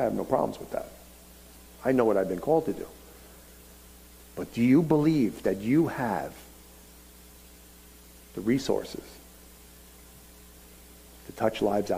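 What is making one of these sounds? A middle-aged man speaks into a headset microphone with animation, in short bursts with pauses.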